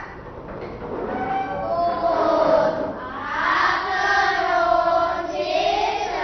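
A group of young girls sings together in unison.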